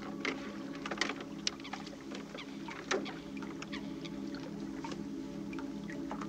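A wooden boat knocks and creaks as a man climbs in.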